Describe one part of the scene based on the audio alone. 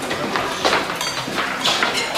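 Diners chatter softly in a busy room.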